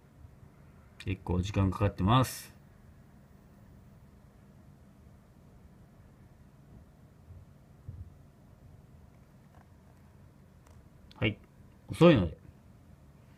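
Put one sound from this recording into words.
A man speaks briefly and quietly, close by.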